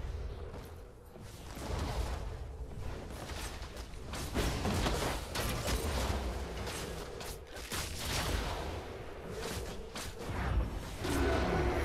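Spell blasts and sword hits crackle and clash in a fast game battle.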